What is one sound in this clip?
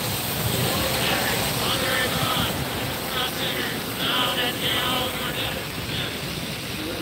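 A crowd recites prayers in unison at a distance.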